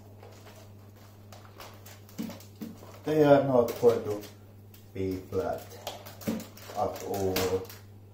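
A plastic vacuum cleaner clacks as it is tilted and set down on a carpet.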